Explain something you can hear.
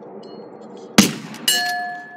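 A rifle shot cracks once.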